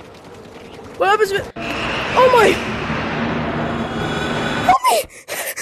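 A monster lets out a loud, harsh screeching growl.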